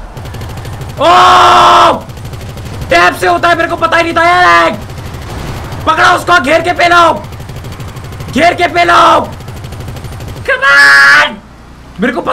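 A young man talks loudly and excitedly into a close microphone.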